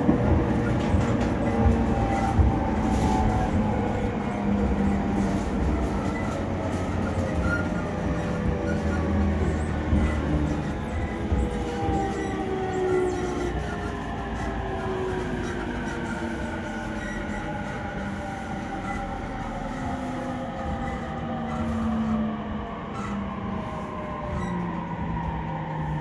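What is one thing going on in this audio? A train rumbles and rattles along the tracks.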